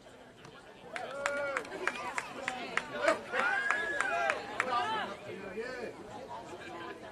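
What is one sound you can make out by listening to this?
A crowd of spectators cheers and shouts from a distance outdoors.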